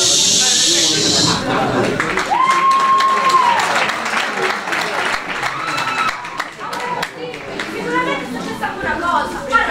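A man speaks loudly on stage, a little distant.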